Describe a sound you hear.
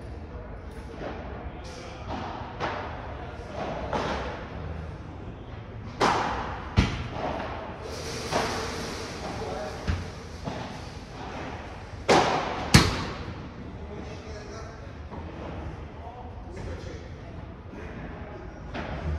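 A ball bounces off the court and walls.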